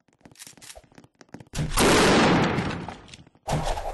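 An explosion booms with a roaring rush of fire.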